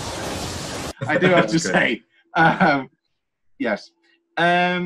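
Young men laugh over an online call.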